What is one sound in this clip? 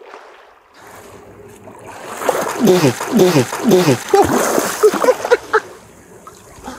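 Water splashes and laps close by.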